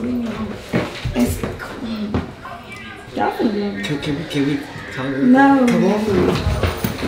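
A young woman talks nearby.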